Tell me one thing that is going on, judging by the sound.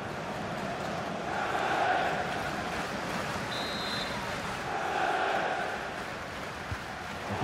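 A large stadium crowd roars and cheers, swelling and falling.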